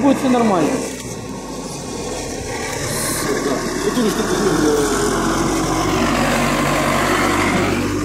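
A truck engine rumbles as a truck drives past.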